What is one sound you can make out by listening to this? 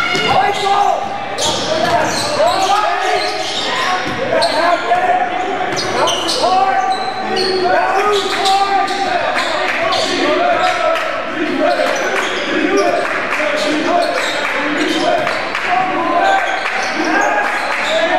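Sneakers squeak sharply on a hardwood court, over and over.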